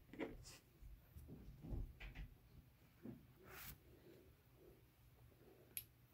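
Fabric rustles and crinkles as hands handle it.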